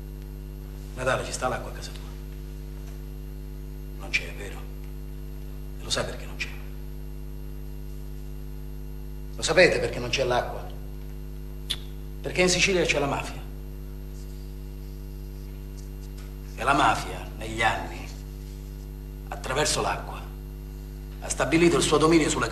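A young man speaks softly, close by.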